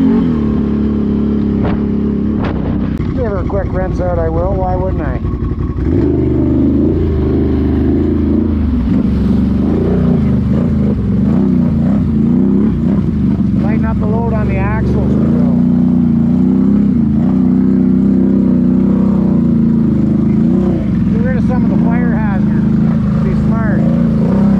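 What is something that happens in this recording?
A quad bike engine drones and revs up close.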